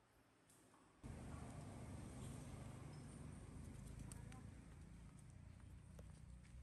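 A bicycle rolls over a dirt track.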